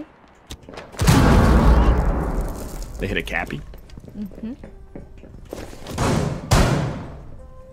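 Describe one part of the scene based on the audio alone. Gunshots fire in short loud bursts.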